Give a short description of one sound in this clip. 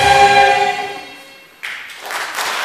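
A choir sings loudly in a large echoing hall.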